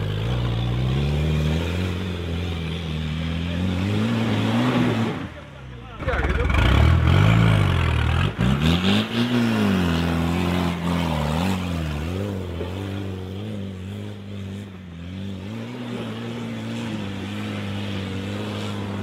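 A truck engine revs hard and labours, rising and falling in pitch.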